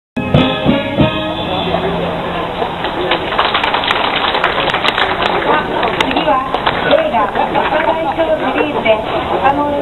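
A brass band plays a lively march outdoors.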